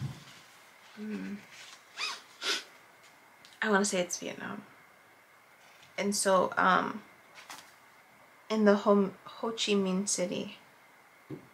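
A young woman speaks softly and close by, in short phrases.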